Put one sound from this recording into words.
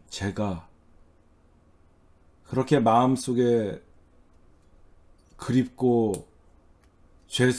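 A middle-aged man speaks animatedly into a close microphone, in short bursts with pauses.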